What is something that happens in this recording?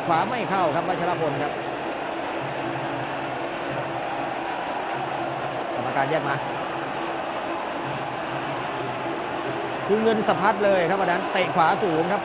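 A large crowd murmurs and cheers in a big hall.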